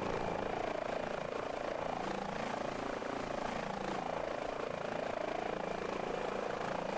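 A helicopter engine whines steadily with a rapid chopping of rotor blades.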